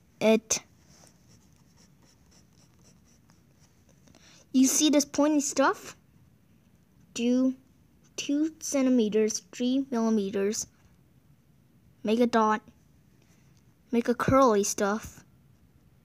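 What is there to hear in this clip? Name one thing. A ballpoint pen scratches across paper.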